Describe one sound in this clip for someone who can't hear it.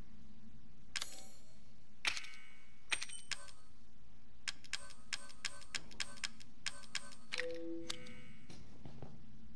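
Menu clicks tick in quick succession.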